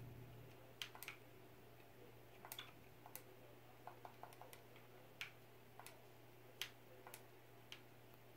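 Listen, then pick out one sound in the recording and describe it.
Buttons click sharply now and then, with short pauses between.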